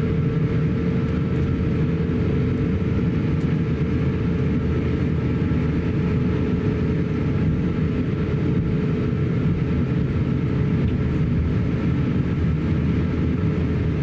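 An aircraft cabin rumbles steadily as the plane rolls along the ground.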